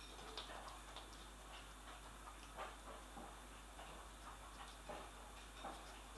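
A cat's paws patter softly on a wooden floor.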